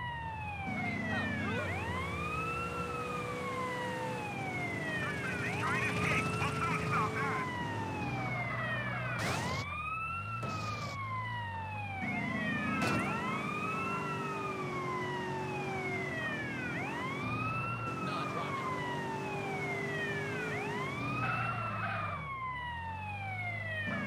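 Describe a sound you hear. A police siren wails, rising and falling over and over.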